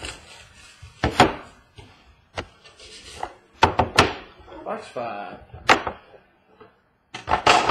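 Small cards and boxes tap and knock on a hard tabletop.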